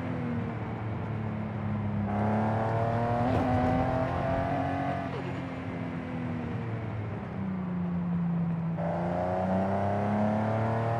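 A car engine hums steadily and revs up and down as the car drives.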